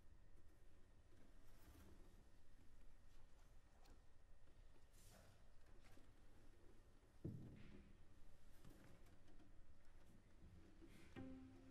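A cello plays a slow melody.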